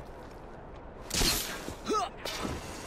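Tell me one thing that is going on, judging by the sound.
A rope launcher fires with a sharp whoosh.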